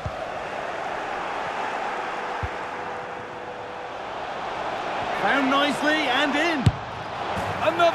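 A large stadium crowd roars steadily in an open arena.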